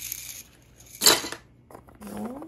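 Plastic toys rattle in a box.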